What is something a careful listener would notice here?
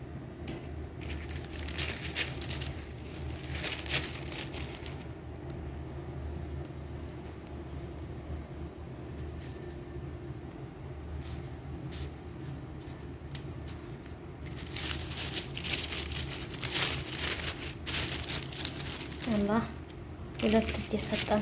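Paper wrapping crinkles and rustles close by.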